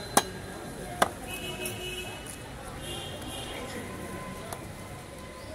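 A heavy curved knife chops through fish.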